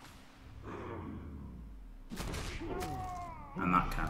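Armoured players slam together with a heavy thud.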